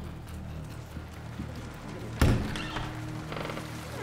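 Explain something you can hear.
A metal gate clanks as it swings open.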